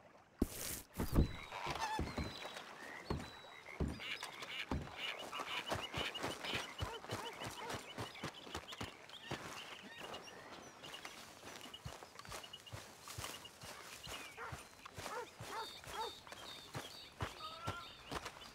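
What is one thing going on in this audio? Footsteps crunch on dirt and grass at a steady walking pace.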